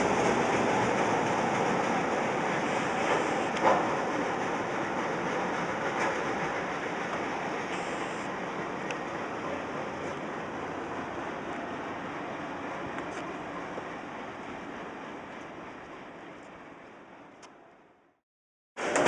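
A freight train rumbles and rattles along the tracks, slowly fading.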